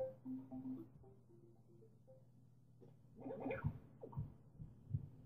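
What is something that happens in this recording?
A television plays a short electronic tune and game sounds.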